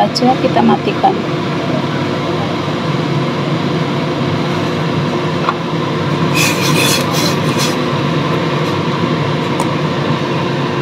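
Water boils and bubbles steadily in a metal pot.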